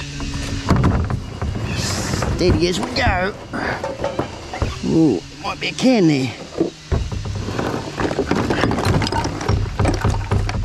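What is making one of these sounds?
A plastic bin lid knocks and rattles.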